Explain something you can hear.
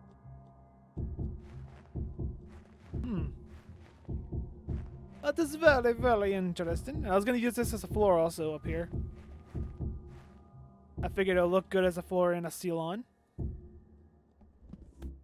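A man talks casually and with animation into a close microphone.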